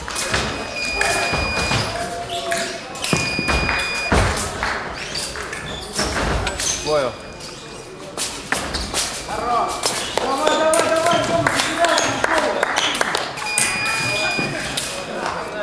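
An electronic scoring box beeps.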